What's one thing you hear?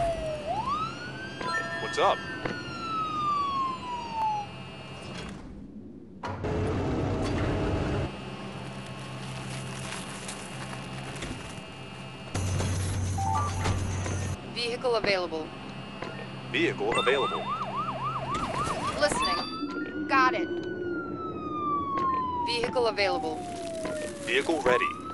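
A siren wails and slowly falls in pitch.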